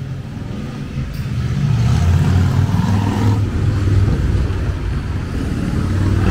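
Traffic rumbles along a street outdoors.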